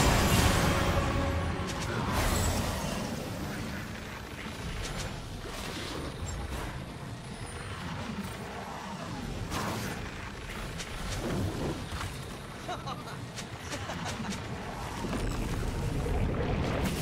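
Magic spells whoosh and crackle in a fast game battle.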